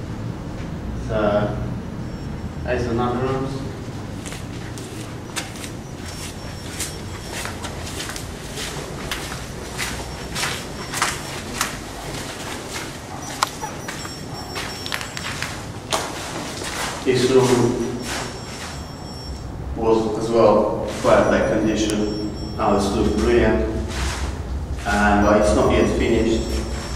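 A young man talks with animation close by, in an echoing empty room.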